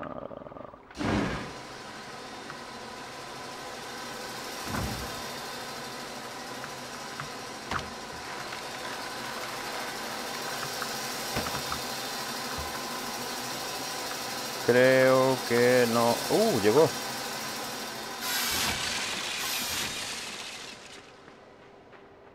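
Heavy machinery hums and clanks steadily.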